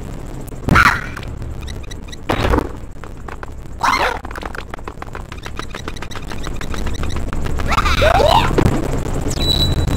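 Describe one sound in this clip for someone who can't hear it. Short electronic sound effects chime and jingle.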